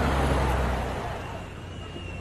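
A car engine hums as a car rolls to a stop.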